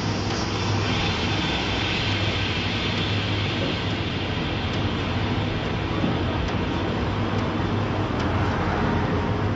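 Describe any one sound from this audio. Cars drive past on a city street.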